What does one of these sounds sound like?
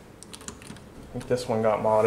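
An elevator button clicks as it is pressed.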